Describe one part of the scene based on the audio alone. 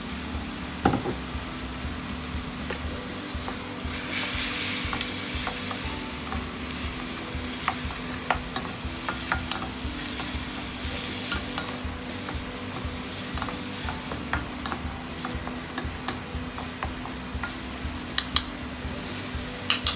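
Wooden spatulas scrape and knock against a metal pan.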